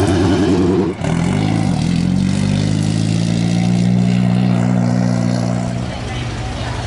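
A sports car engine idles with a deep rumble.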